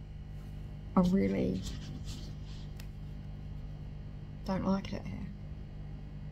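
A woman speaks softly close to the microphone, in short bursts.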